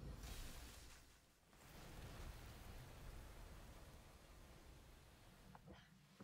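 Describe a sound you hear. Heavy thuds and crashes shake the ground.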